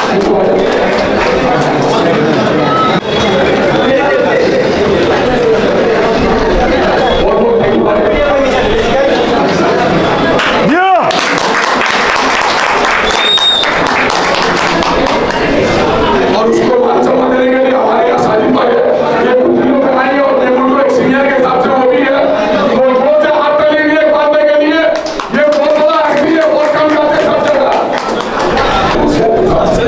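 A man speaks with animation into a microphone, heard through loudspeakers in an echoing hall.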